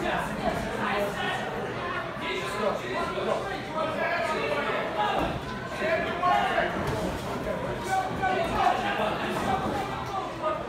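A crowd talks and shouts in an echoing hall.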